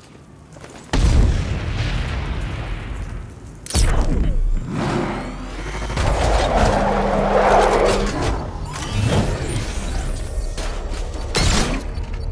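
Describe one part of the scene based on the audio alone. A powerful car engine roars and revs.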